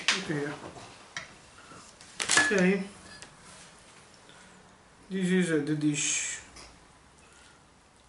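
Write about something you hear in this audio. A fork scrapes and clinks in a metal pan.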